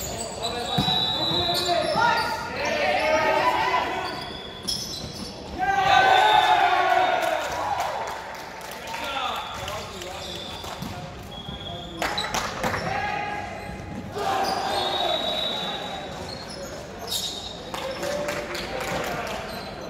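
A volleyball is struck with dull slaps.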